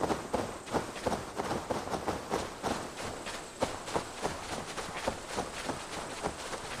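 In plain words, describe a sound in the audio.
Footsteps rustle quickly through tall wet grass.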